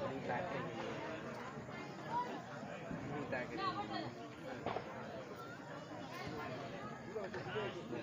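Several women chatter and talk over one another outdoors.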